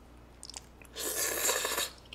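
A young man slurps noodles up close.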